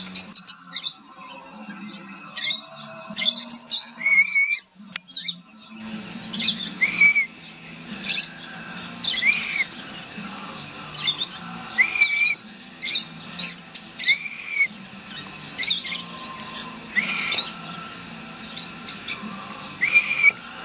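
Small parrots chirp and screech in sharp bursts from close by.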